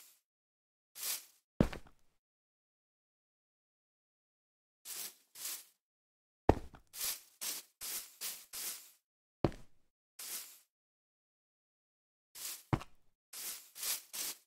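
Footsteps rustle through grass and thud on the ground in short bursts.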